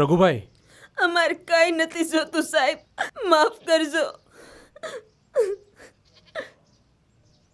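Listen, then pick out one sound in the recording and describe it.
A young woman speaks tearfully and pleadingly close by.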